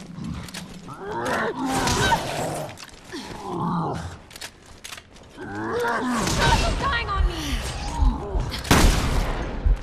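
A shotgun fires with a loud boom.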